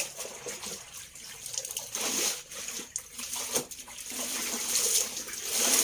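Wet clothes slosh and splash in a basin of water.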